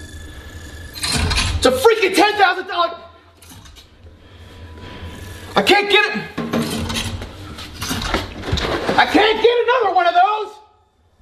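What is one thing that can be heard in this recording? A young man shouts loudly and angrily close by.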